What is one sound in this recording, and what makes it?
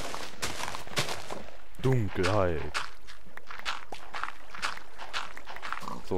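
Water gently trickles and laps.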